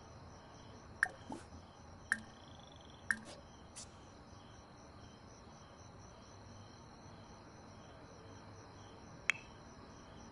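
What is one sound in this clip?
Short game interface clicks sound a few times.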